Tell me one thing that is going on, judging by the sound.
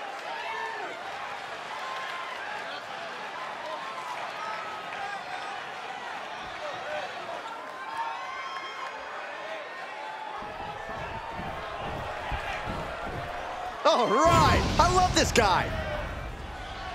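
A large crowd cheers and roars in a big echoing arena, swelling loudly near the end.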